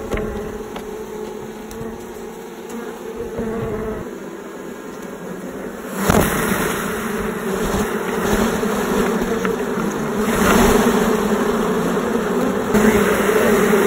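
Bees buzz loudly and steadily close by.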